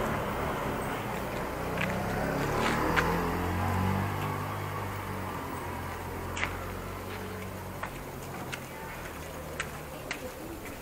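A motorcycle engine rumbles nearby at low speed.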